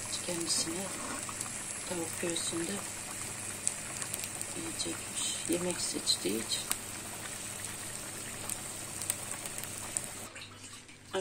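Meat sizzles steadily in a hot pot.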